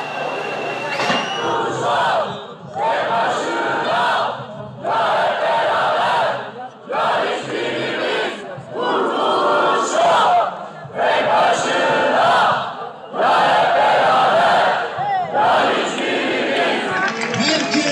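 A large crowd chants loudly together in rhythmic bursts.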